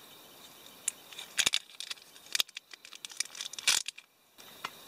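A knife cuts through something firm on a plate with sharp clicks.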